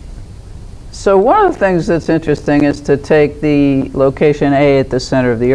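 An elderly woman speaks calmly.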